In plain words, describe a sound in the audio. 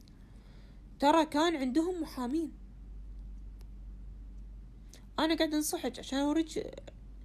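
A woman speaks with animation close to a phone microphone, in short bursts.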